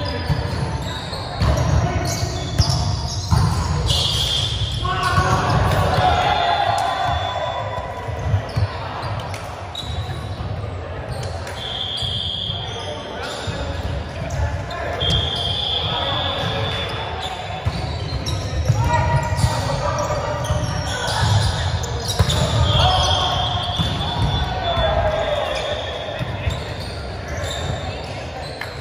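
Young people call out and chatter across the hall.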